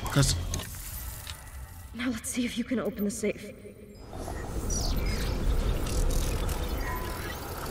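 Electricity crackles and fizzes.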